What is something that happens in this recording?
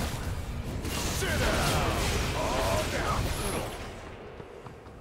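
Game spell effects and hits crackle and whoosh in a busy fight.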